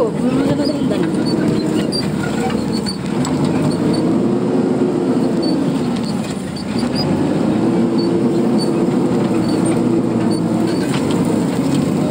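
A vehicle's diesel engine drones close by, its pitch rising and falling as it revs.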